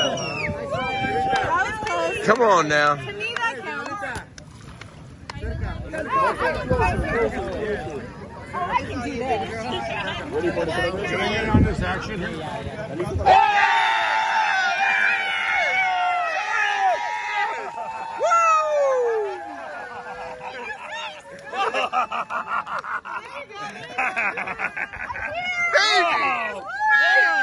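Young women cheer and shout with excitement outdoors.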